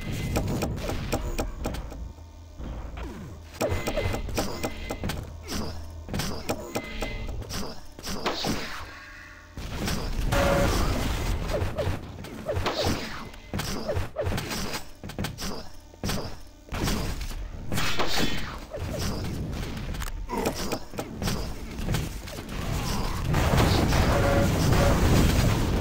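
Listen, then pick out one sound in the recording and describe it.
Game weapons fire with rapid zaps and blasts.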